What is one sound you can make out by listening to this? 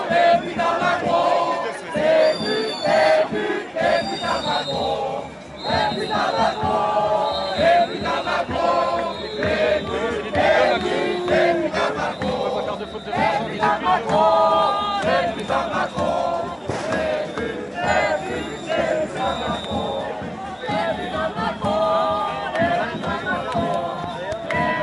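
A large crowd of men and women chants and shouts loudly outdoors.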